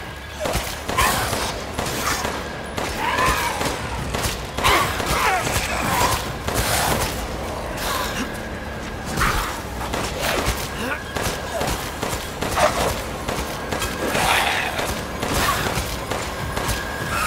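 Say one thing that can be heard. A creature growls and snarls.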